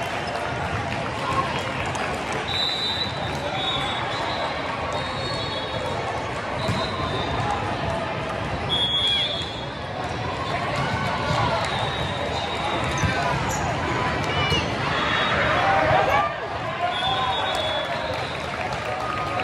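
A crowd of spectators chatters throughout a large echoing hall.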